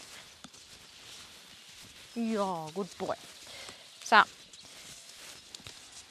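Hooves thud softly on sand as a horse walks.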